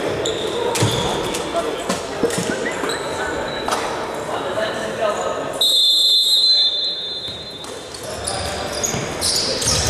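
A ball thuds off a player's foot.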